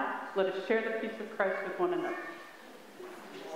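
A woman speaks into a microphone in a large echoing hall.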